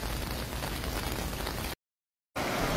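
Car tyres slosh through deep floodwater.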